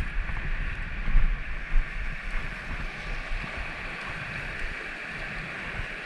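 Wind buffets the microphone in gusts.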